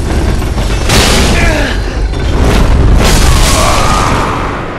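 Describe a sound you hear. A magic blast bursts with a loud roaring whoosh.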